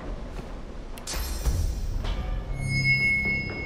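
A magic spell hums and chimes with a bright shimmer.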